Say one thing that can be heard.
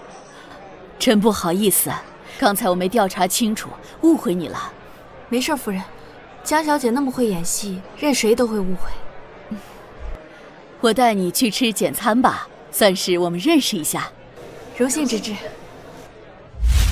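A middle-aged woman speaks calmly and warmly, close by.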